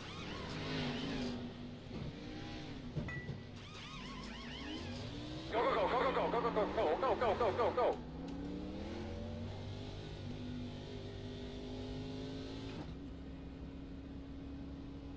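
A race car engine drones steadily from a game.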